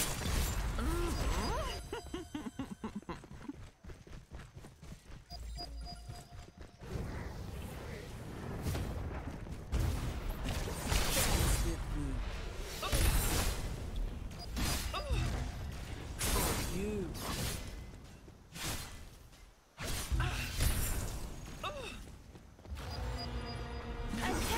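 Game explosions and magic blasts boom and crackle in bursts.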